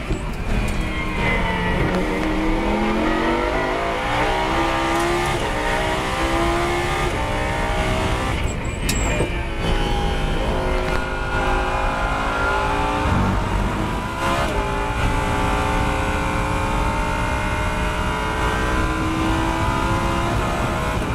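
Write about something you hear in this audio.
Wind and road noise rush steadily around the car.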